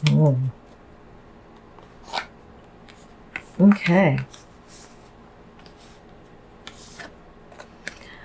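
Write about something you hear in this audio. Cards slide and tap softly onto a cloth.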